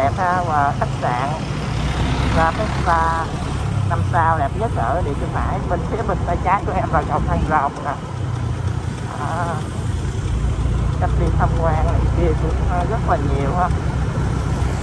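A man speaks calmly close to the microphone.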